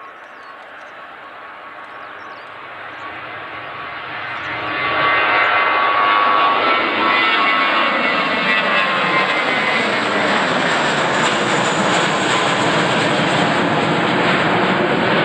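A jet airliner's engines roar loudly as it takes off and climbs overhead, growing louder as it passes close.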